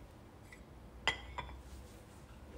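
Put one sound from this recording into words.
A glass jar is set down on a plate with a sharp clink.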